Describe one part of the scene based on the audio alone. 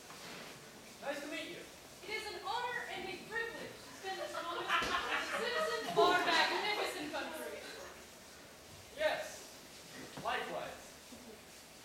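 A teenage boy speaks in reply on a stage.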